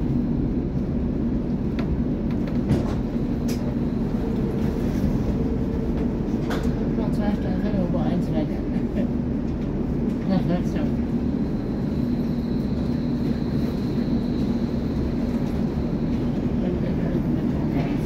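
Footsteps tap on a hard floor as people walk past.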